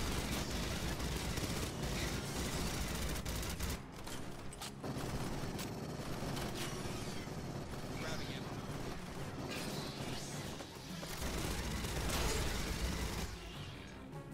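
A rapid-fire gun fires in long, loud bursts.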